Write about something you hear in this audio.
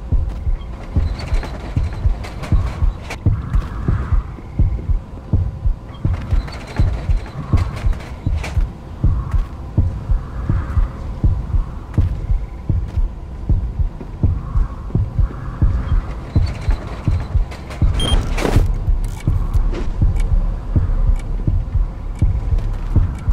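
Footsteps thud quickly on wooden floors.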